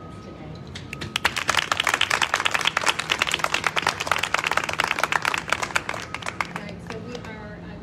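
A crowd applauds outdoors.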